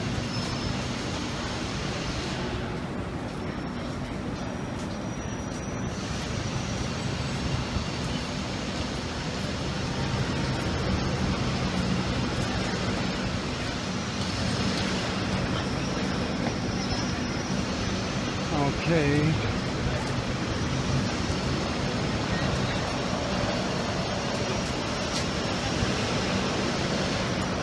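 A large diesel engine idles with a steady low rumble.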